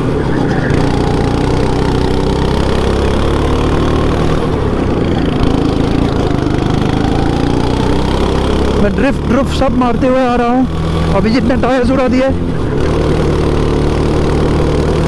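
A kart engine buzzes loudly close by, its pitch rising and falling as the kart speeds up and slows down through the turns.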